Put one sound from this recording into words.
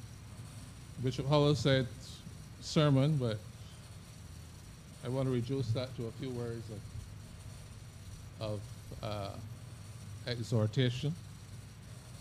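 An elderly man speaks slowly and calmly into a microphone, with pauses between phrases.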